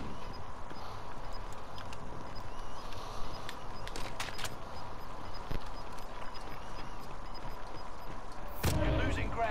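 Boots clank on metal ladder rungs.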